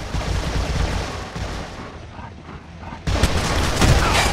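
Heavy footsteps run over grass and dirt.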